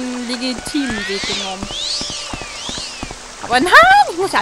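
A magic spell crackles and shimmers with sweeping whistling tones.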